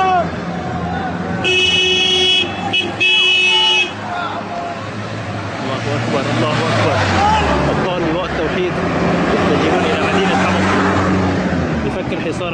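Cars and vans drive past on a road nearby.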